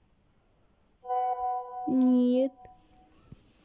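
A phone's message alert chimes briefly.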